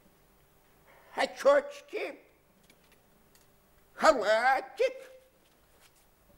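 An elderly man speaks theatrically.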